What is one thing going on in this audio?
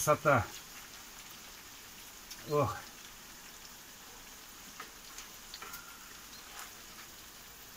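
A wooden spatula scrapes and knocks against a frying pan.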